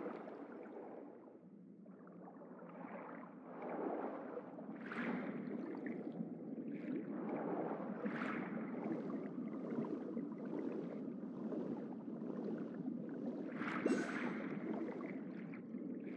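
Water swooshes and bubbles as a figure swims underwater.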